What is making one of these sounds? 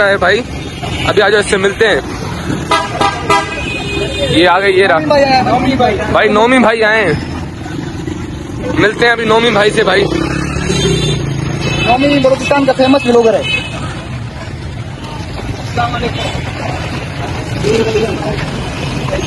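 Motorcycles and cars rumble past on a busy street outdoors.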